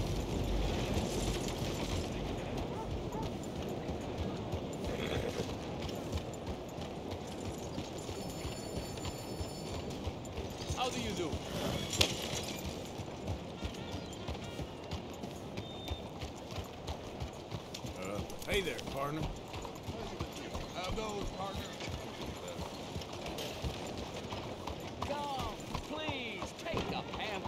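A horse's hooves clop steadily on a dirt road.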